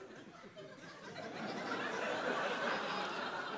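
An audience cheers and applauds.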